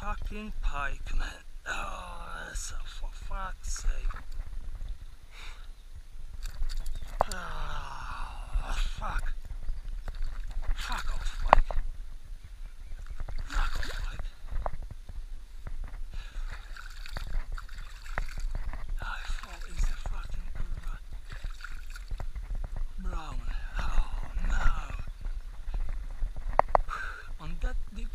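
A shallow river flows and ripples close by.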